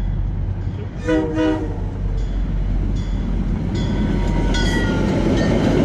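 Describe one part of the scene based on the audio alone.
A train horn blares in short blasts.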